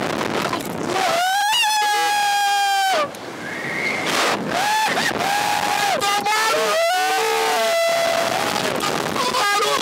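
Two men scream loudly close by.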